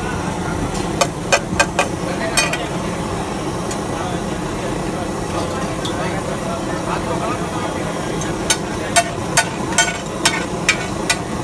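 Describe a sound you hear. A metal spatula clinks and scrapes against a griddle.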